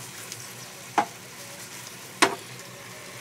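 Chopsticks knock against the side of a pan.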